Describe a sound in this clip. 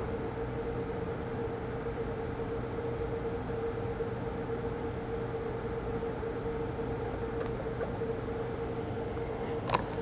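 A welding torch buzzes with a steady, even hum.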